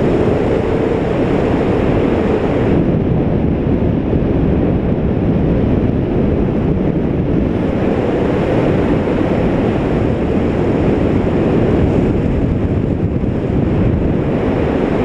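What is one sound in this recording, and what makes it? Strong wind rushes steadily past, loud and rumbling, high in the open air.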